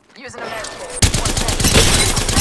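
A gun fires in a rapid burst with electric crackling.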